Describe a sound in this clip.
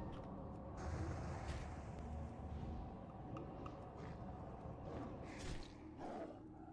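Game spell effects whoosh and chime.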